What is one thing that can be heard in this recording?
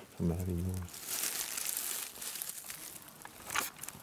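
Dry leaves rustle and crackle as a hand brushes through them.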